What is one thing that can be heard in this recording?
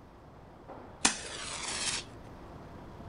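A match strikes and flares with a hiss.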